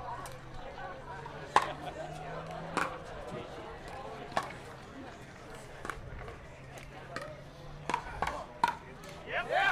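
Paddles hit a plastic ball with sharp pops in a quick rally.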